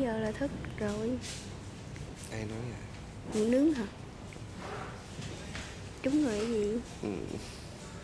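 A young woman speaks softly and cheerfully close by.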